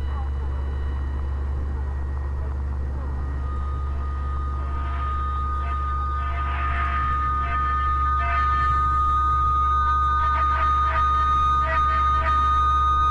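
Radio static hums and crackles as a receiver is tuned across stations.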